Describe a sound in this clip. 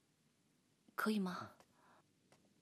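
A young man speaks briefly and calmly nearby.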